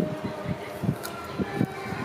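A woman bites and crunches a crisp cracker up close.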